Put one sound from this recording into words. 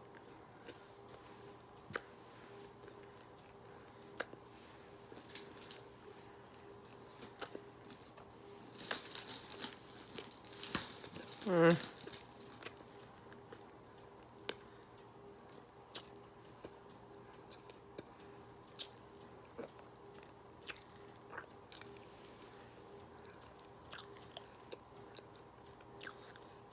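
A woman chews something crunchy close up.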